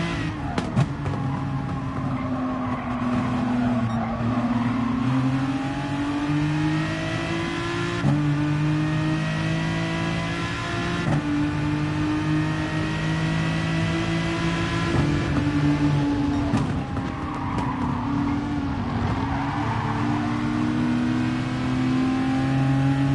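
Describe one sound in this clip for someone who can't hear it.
A racing car engine roars steadily, rising in pitch as it speeds up and dropping with each gear change.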